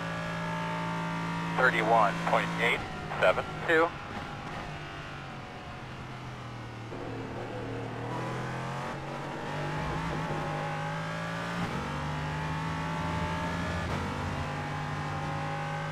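A racing car engine drones loudly, its pitch rising and falling as the gears change.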